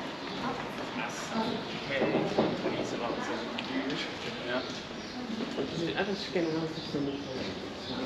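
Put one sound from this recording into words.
Two men talk casually nearby as they pass.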